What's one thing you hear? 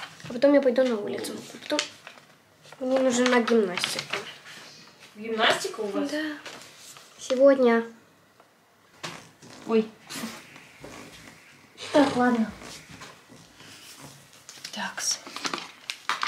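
A teenage girl talks casually, close by.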